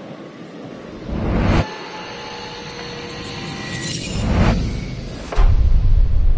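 A man speaks in a distorted, eerie voice.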